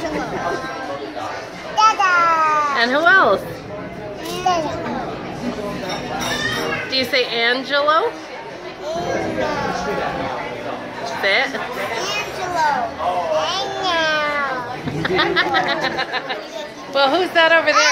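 A little girl talks animatedly close by in a high voice.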